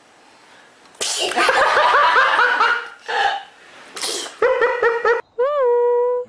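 A toddler squeals and laughs up close.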